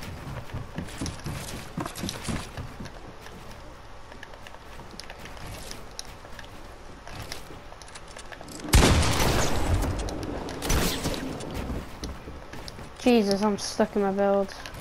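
Wooden building pieces snap into place with quick clattering knocks.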